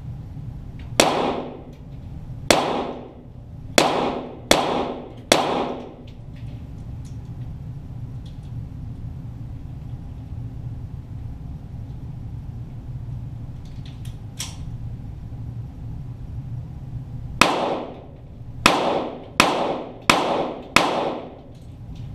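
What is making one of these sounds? Gunshots crack in two quick bursts, each ringing briefly.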